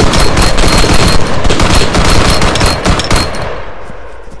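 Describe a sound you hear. Rapid gunfire rattles loudly and close.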